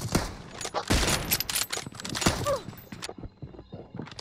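Gunfire cracks in rapid bursts close by.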